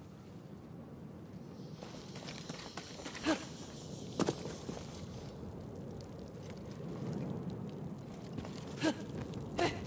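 Footsteps crunch on grass and stone.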